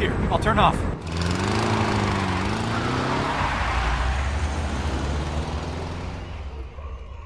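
A car engine revs as the car drives away and fades.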